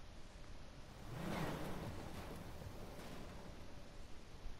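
A vehicle engine roars past.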